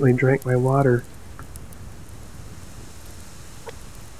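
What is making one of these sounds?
A campfire crackles close by.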